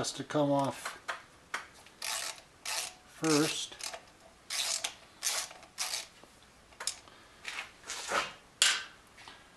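A screwdriver clicks and scrapes against metal.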